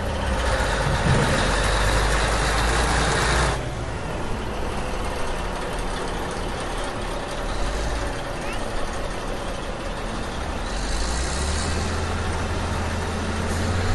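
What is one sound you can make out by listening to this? A plastic toy truck scrapes and crunches through sand.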